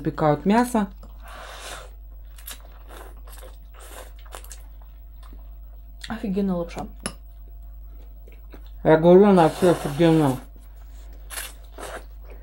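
A boy slurps noodles.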